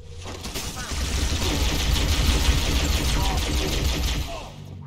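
A plasma rifle fires in quick bursts.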